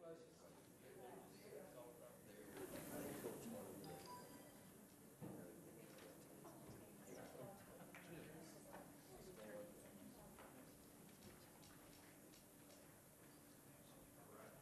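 Men and women chat quietly at a distance in a large echoing room.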